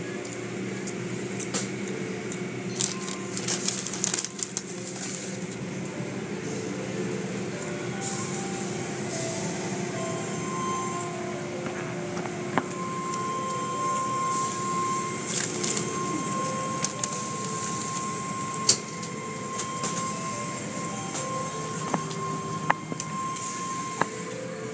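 Water sprays and drums against a car's windows.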